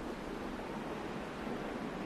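Birds call overhead.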